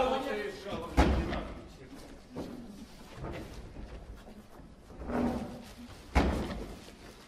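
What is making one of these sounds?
A heavy object thumps down on a table.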